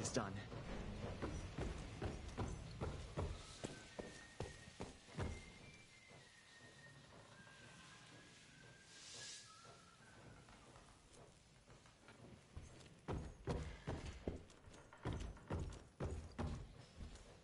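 Boots thud across creaky wooden floorboards.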